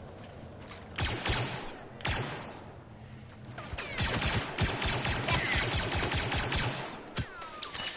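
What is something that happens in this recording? Laser blasts fire in rapid bursts.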